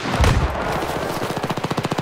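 A submachine gun fires a burst.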